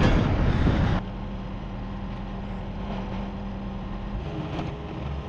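A skid steer loader's engine rumbles steadily nearby.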